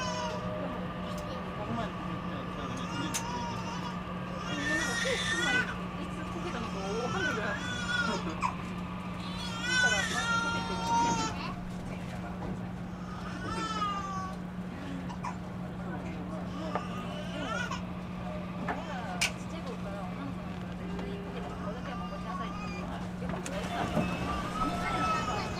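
A train's motors hum steadily while it stands nearby.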